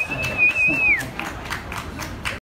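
A man claps his hands a few times.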